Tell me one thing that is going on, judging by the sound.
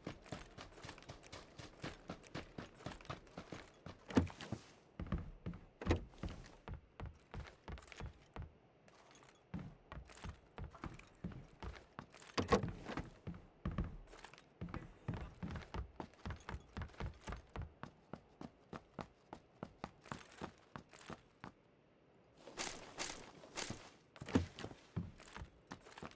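Footsteps run quickly over hard floors.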